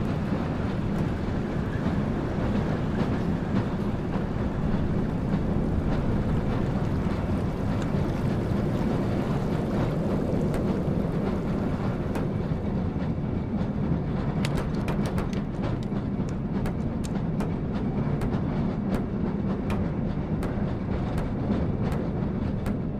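A rail cart rumbles steadily along metal tracks.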